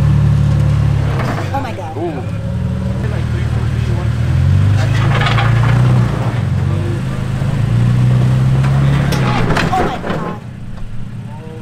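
Tyres crunch and scrape on rock.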